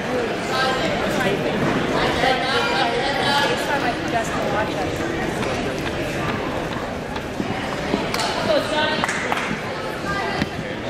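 A crowd of people talks and calls out in a large echoing hall.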